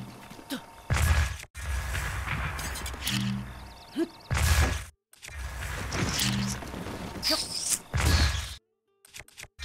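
A magic energy blast whooshes and booms.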